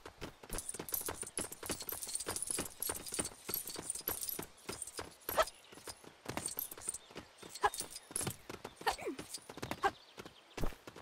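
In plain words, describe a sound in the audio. Small game coins tinkle and chime in quick bursts as they are collected.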